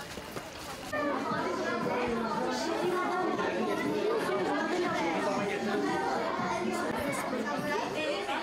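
A young boy talks calmly nearby.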